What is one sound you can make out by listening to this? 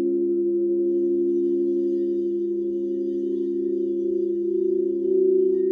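A mallet rubs around the rim of a singing bowl, making a swelling tone.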